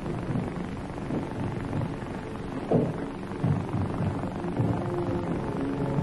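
Footsteps cross a wooden floor.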